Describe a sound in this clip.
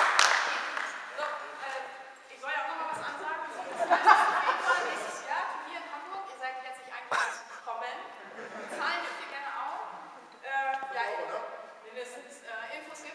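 Several adults talk and chatter in an echoing hall.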